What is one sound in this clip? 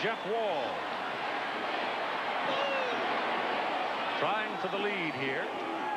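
A large stadium crowd murmurs and cheers steadily outdoors.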